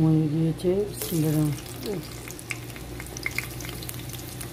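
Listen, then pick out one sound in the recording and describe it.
Whole spices sizzle and crackle in hot oil.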